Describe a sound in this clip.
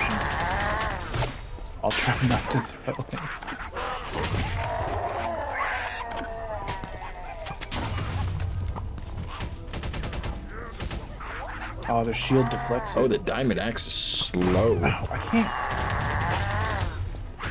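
Weapon blows and bursts crash in a video game.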